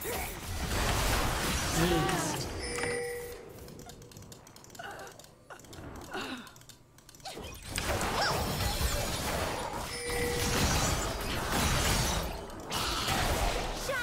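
Fantasy game sound effects clash, zap and whoosh.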